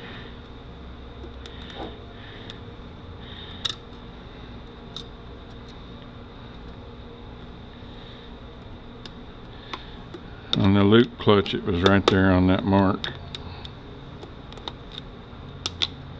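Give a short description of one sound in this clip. Metal parts clink and tap softly as they are handled close by.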